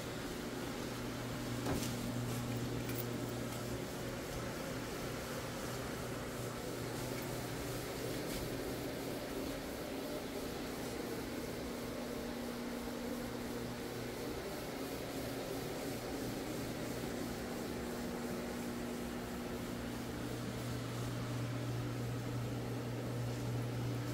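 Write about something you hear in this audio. A floor scrubbing machine hums steadily as it spins over carpet.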